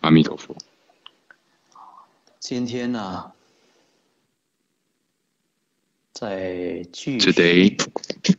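A middle-aged man speaks calmly through a microphone over an online call, pausing between phrases.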